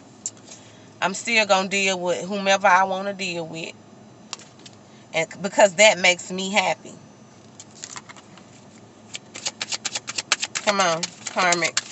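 A woman talks to the listener calmly and expressively, close to a microphone.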